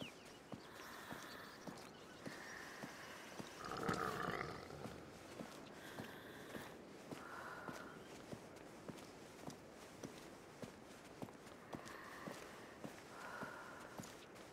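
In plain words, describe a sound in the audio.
Footsteps crunch steadily on grass and stone.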